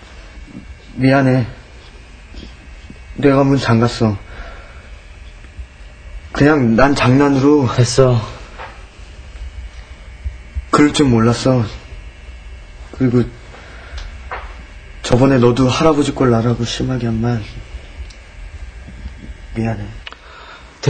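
A young man speaks calmly nearby, in short bursts.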